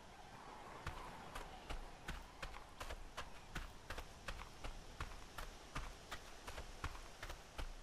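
Footsteps pad quickly through grass and brush.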